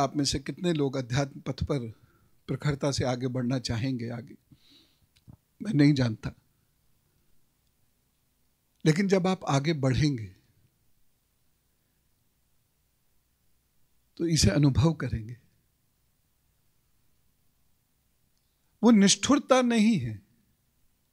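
A middle-aged man speaks calmly into a microphone, in bursts with long pauses.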